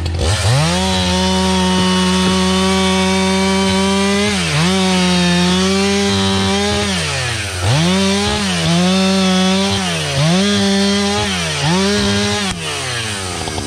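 A chainsaw roars loudly, revving up and dipping several times as it cuts through wood.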